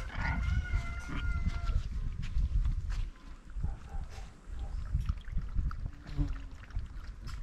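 Puppies whine and yelp in high voices.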